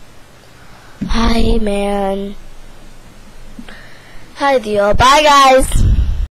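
A young girl speaks loudly and excitedly close to a microphone, her voice rising into high, drawn-out wails.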